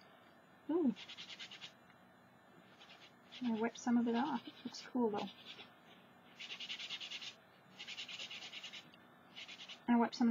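A cloth rubs and dabs over a sheet of paper.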